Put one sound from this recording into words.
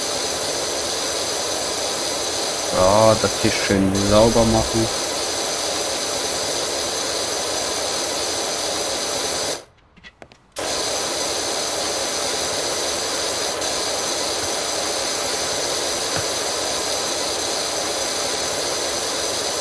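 A pressure washer sprays a hissing jet of water.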